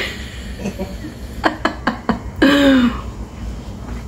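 A middle-aged woman laughs close by.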